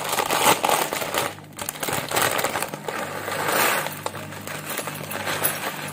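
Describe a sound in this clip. A plastic snack packet crinkles and rustles.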